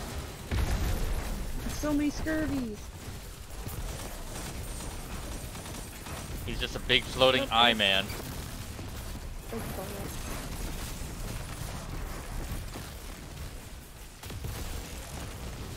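Gunfire and energy blasts rattle and boom in a video game battle.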